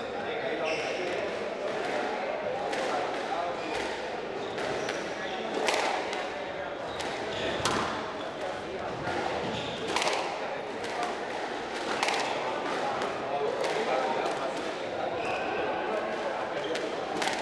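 A squash ball smacks sharply against the walls and rackets in an echoing court.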